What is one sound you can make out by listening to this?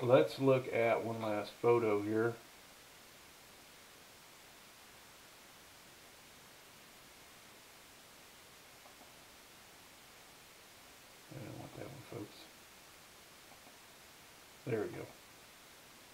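A man speaks calmly into a headset microphone.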